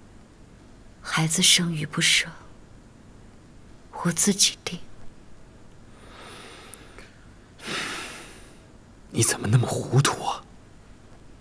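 A young woman speaks softly and slowly, close by.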